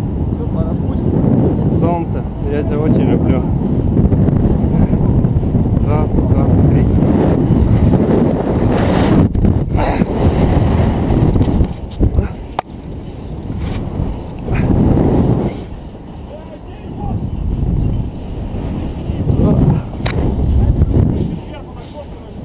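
Wind buffets the microphone in strong gusts high up outdoors.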